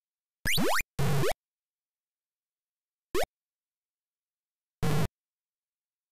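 A buzzy electronic game noise sounds briefly.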